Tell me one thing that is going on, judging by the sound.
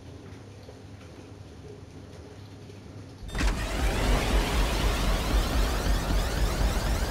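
A car engine roars loudly.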